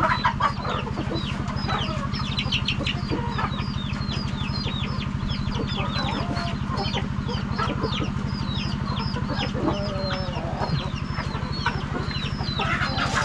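Chickens cluck and chirp close by.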